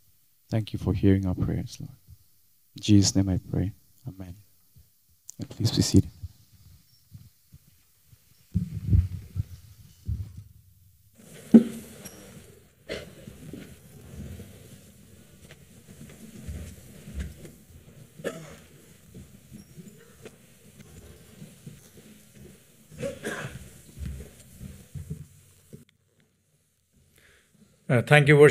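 A man speaks through a microphone at a lectern.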